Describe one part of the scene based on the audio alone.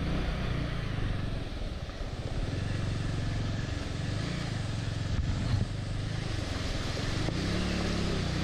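A motorcycle engine thumps steadily at low speed.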